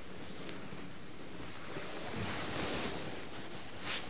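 Cloth rustles as a jacket is put on.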